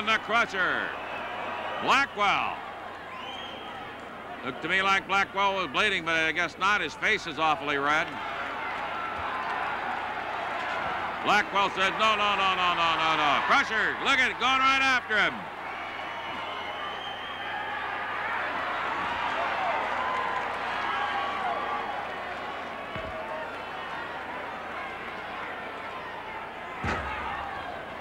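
A large crowd cheers and shouts in an echoing hall.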